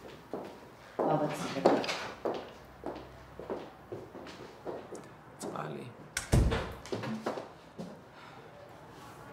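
An elderly woman speaks calmly close by.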